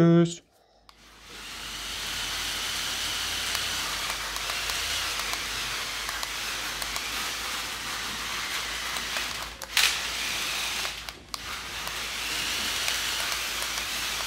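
A small electric motor whirs steadily as a toy car drives across a hard floor.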